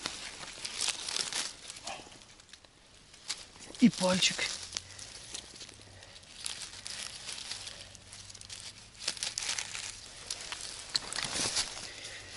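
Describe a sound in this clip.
Dry leaves and grass rustle as a hand picks mushrooms from the ground.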